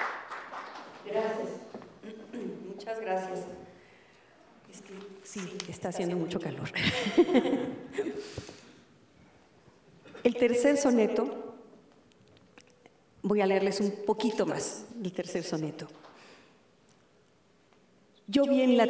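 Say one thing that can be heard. A middle-aged woman speaks calmly into a microphone, heard through loudspeakers.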